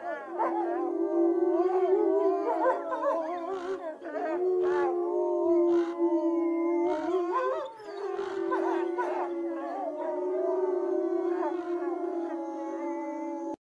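Two wolves howl together in long, wavering cries.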